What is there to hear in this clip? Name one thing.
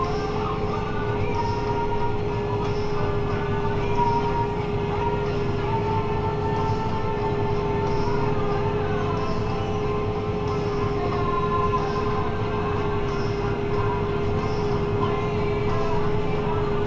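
Gulls call outside.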